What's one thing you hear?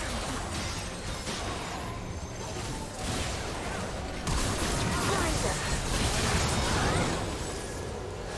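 Spell effects crackle and burst during a game fight.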